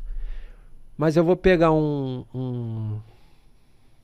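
A young man speaks into a microphone with drawn-out, animated sounds.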